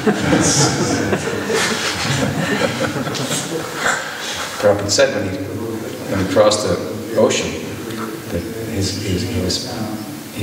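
An elderly man speaks calmly into a microphone, close by.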